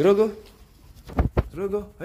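A monk parakeet flaps its wings as it takes off.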